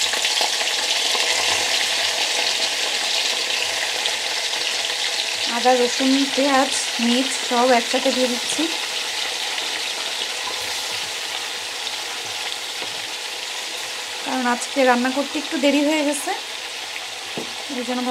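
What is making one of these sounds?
Oil sizzles and hisses in a hot pan, gradually quietening.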